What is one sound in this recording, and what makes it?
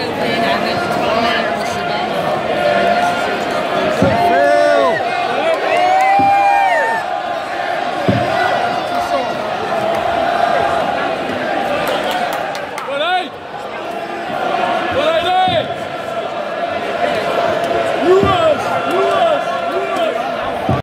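A large crowd sings and cheers loudly in a big echoing hall.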